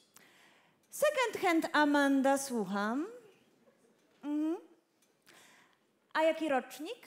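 A young woman speaks with animation into a headset microphone.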